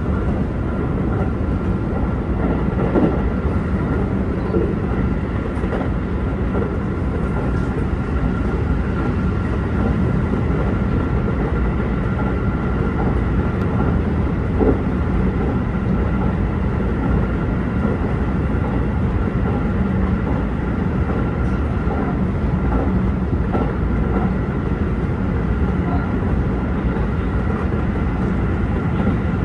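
Wheels clatter over rail joints now and then.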